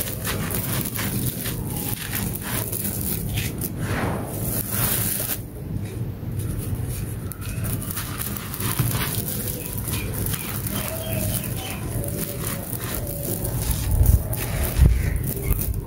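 Loose gritty dirt trickles and patters down from the hands.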